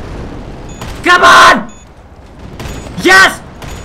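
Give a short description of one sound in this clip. A young man shouts loudly close to a microphone.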